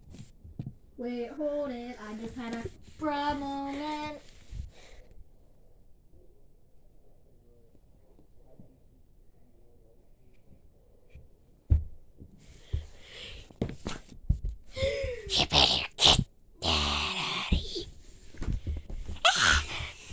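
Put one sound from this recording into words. A young child speaks in a high, playful voice close by.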